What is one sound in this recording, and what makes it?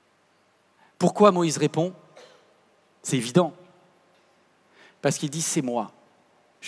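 A man speaks clearly into a headset microphone, in short phrases with pauses.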